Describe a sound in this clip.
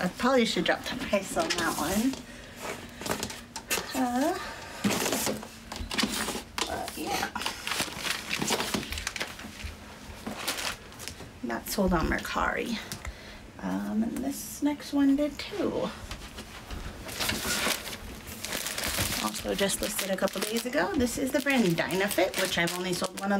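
A woman talks with animation.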